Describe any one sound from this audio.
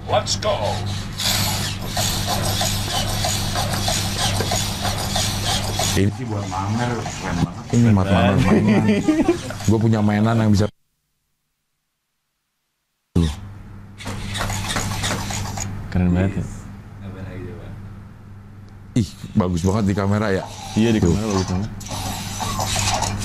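A small robot's motors whir as it walks.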